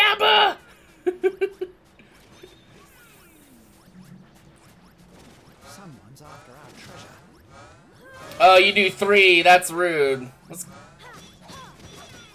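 Magical attacks burst and chime in quick electronic effects.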